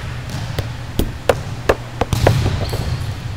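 A volleyball thumps on the floor and bounces.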